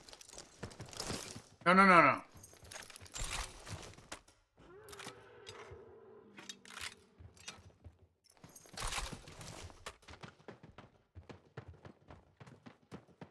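Footsteps crunch over ground and floor.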